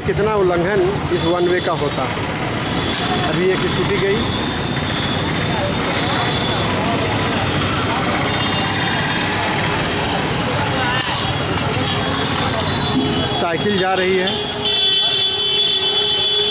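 A busy street crowd chatters all around.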